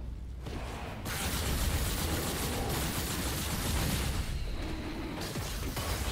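Game spell effects crackle and roar during a fight.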